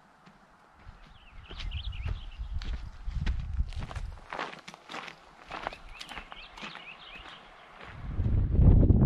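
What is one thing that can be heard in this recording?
Footsteps crunch on a dry dirt trail.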